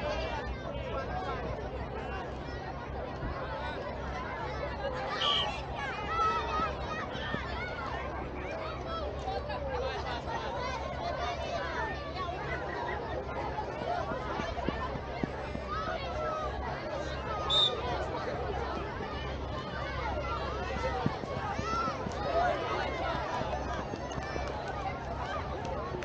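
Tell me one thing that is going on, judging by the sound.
A crowd of people chatters and calls out across an open field.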